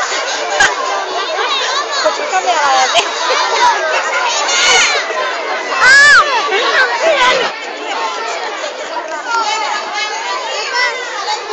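A crowd of children chatters and shouts excitedly close by.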